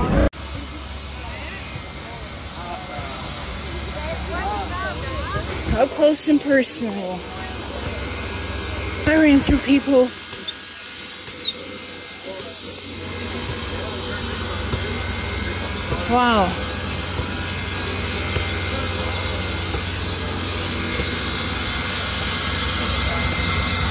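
Steam hisses steadily from a locomotive.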